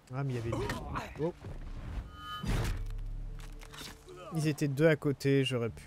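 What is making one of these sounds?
An axe strikes a body with a heavy, wet thud.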